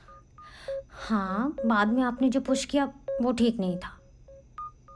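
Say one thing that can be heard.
A woman speaks softly and emotionally.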